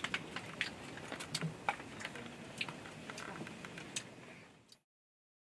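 Plastic toys and papers rustle and click close by.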